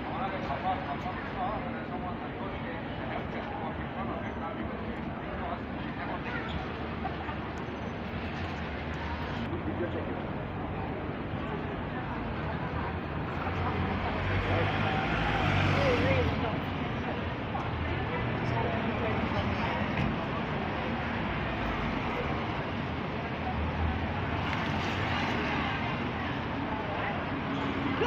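Light rain patters steadily on a wet street outdoors.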